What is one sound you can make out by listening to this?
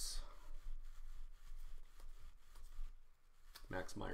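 Trading cards rustle and flick as they are handled.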